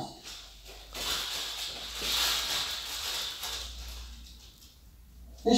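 Balloons rustle as they are handled.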